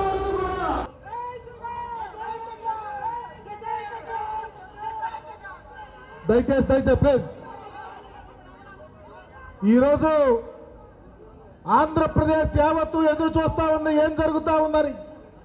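A man gives a speech loudly through a microphone and loudspeakers.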